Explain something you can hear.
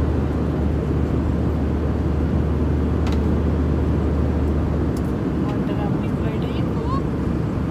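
A middle-aged woman speaks close by.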